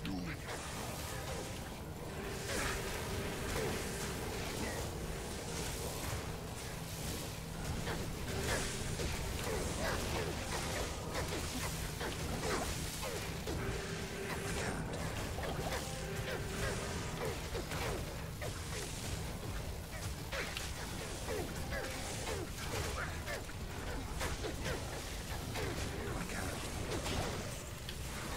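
Spells crackle and burst in quick succession.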